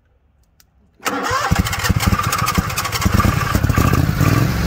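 An engine starts up and runs loudly with a rough, rapid chugging.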